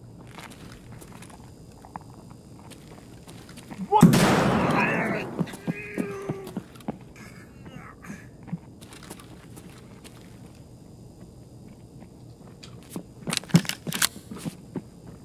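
Footsteps crunch over debris on a hard floor.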